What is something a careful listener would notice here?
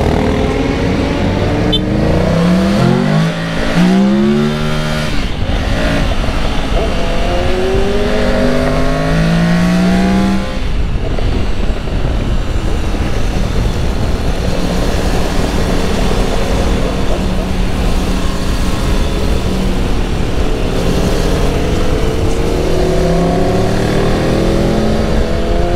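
Wind buffets loudly with a low roar.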